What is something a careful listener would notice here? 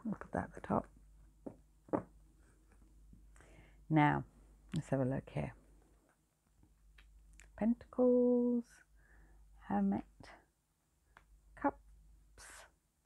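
Playing cards are laid down softly on a cloth.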